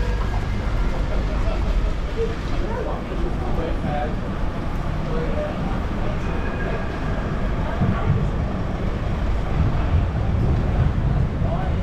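Traffic rumbles steadily along a city street outdoors.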